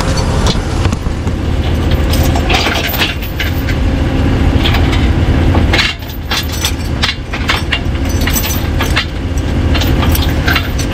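Metal chain links clink and rattle against a tyre.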